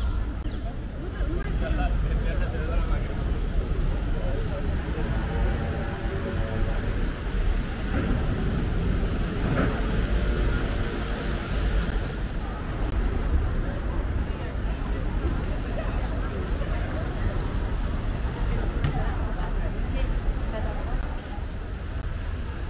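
A busy crowd murmurs and chatters outdoors in a street.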